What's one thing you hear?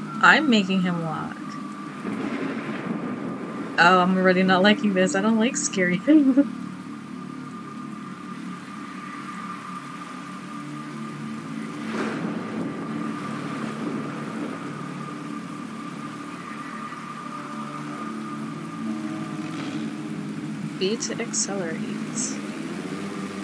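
A young woman talks excitedly into a microphone.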